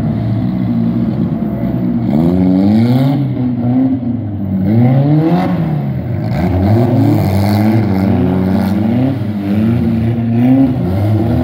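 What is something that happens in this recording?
Tyres screech on wet pavement.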